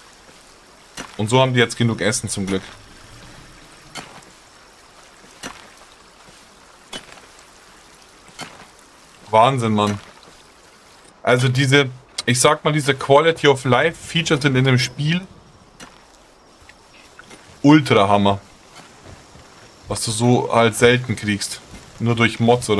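A middle-aged man talks with animation into a close microphone, in short bursts.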